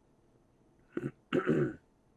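A man speaks briefly into a headset microphone.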